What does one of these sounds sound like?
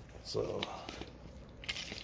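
Shoes scuff and step on a hard concrete floor.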